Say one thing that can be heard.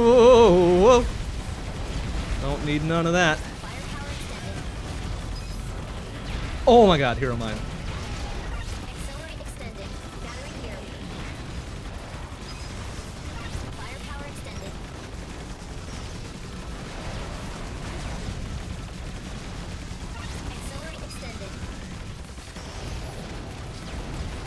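Rapid electronic blasts and explosions from a video game play steadily.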